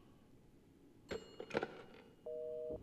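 A telephone receiver is lifted with a clatter.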